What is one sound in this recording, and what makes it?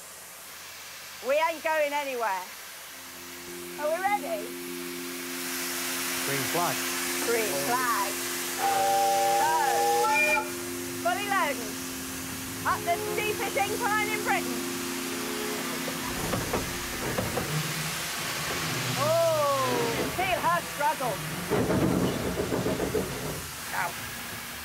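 A steam locomotive rumbles and hisses as it runs along.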